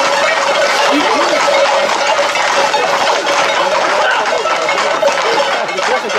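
A crowd of men shouts and chatters excitedly nearby.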